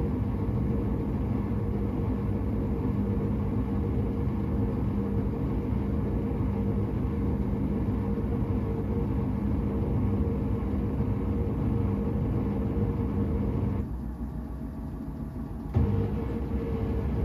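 A washing machine drum hums and churns steadily.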